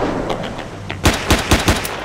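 A handgun fires several sharp shots.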